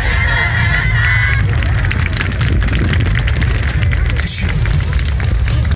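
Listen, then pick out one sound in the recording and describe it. A crowd of dancers chants and shouts in unison.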